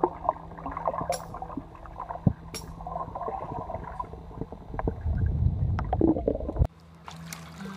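Water gurgles and rumbles underwater.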